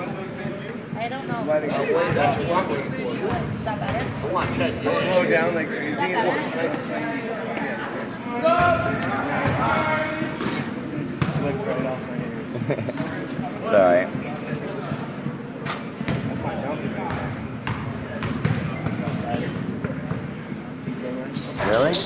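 A crowd of children and adults chatters and shouts in a large echoing gym.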